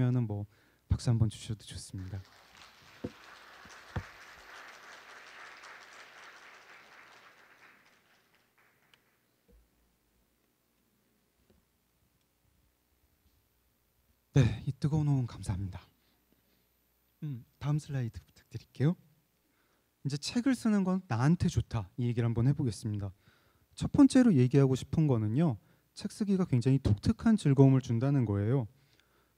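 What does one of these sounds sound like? A man speaks calmly into a microphone in a large hall, heard through loudspeakers.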